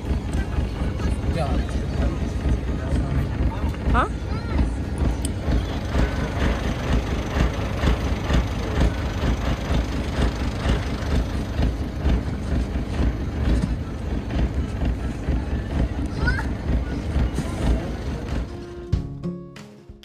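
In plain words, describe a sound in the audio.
A vehicle engine rumbles steadily as it drives along a bumpy dirt road.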